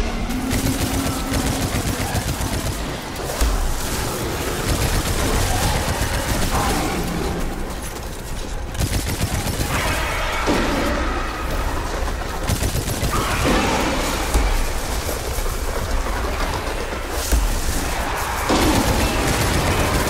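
Rapid gunfire blasts again and again.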